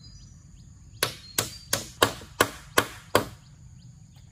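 A hatchet knocks sharply against wood in a quick series of blows.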